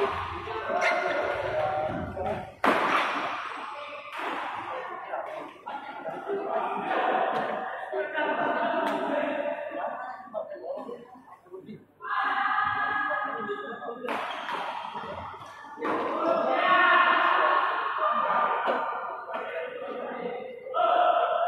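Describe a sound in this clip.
Men talk and call out nearby in a large echoing hall.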